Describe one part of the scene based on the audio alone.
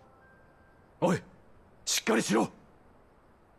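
A young man speaks briefly in a low, calm voice, close by.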